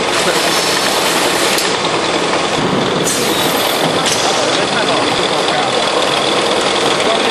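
A case-packing machine and its conveyor run with a dense clatter and hum.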